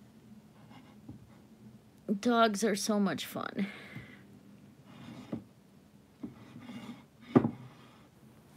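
A ceramic figurine scrapes and knocks softly as a hand turns it.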